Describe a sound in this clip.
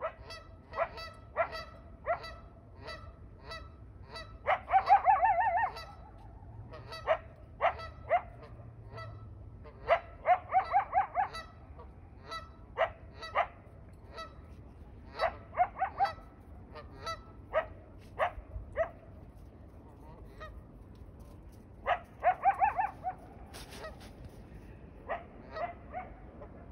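Geese honk loudly and repeatedly nearby.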